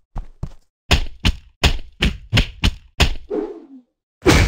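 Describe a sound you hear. Punches land with soft thuds in a game fight.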